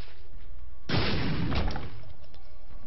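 A video game explosion booms.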